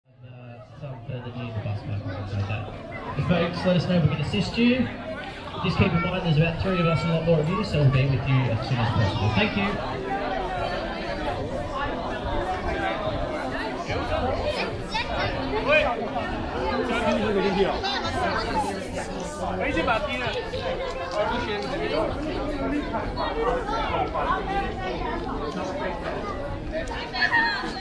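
A crowd of people chatters outdoors all around.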